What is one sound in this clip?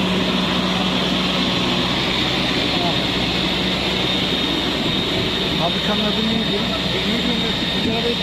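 Men talk among themselves in the background, outdoors.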